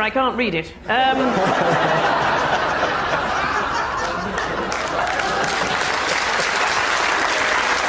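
A studio audience laughs and claps loudly.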